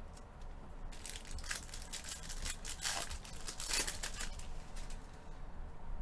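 A foil pack crinkles and tears as it is opened.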